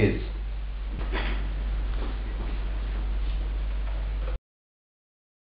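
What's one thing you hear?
A man speaks quietly close by.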